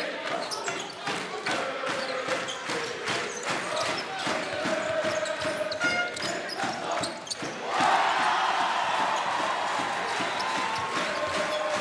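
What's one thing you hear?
A large crowd cheers loudly in an echoing hall, swelling into a roar.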